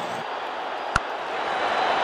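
A bat strikes a cricket ball with a sharp crack.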